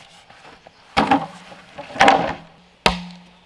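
Bamboo poles knock and clatter as they are dropped onto the ground.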